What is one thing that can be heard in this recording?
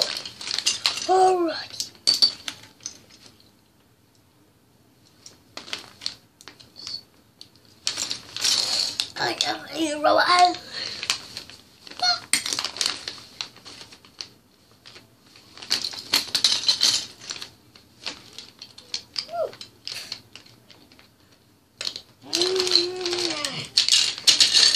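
Plastic toy bricks click and rattle as a child sorts them.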